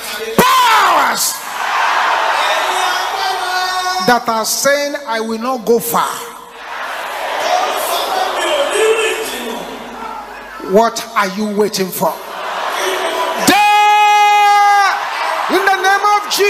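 A man preaches loudly and forcefully into a microphone.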